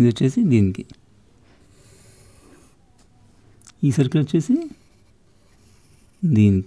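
A pencil scratches softly across paper.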